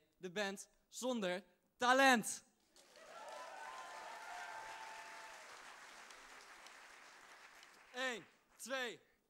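A man shouts out through a microphone in a large hall.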